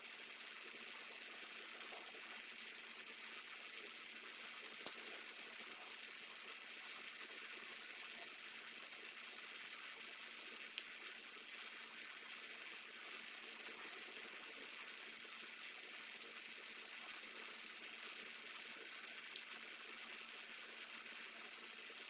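Fingers tap and press softly on a plastic disc.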